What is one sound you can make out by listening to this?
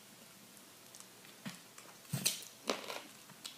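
A young woman chews food with soft smacking sounds.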